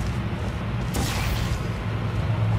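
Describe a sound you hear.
A sci-fi energy gun fires with a bright whooshing zap.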